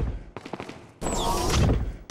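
Heavy metal doors slide open.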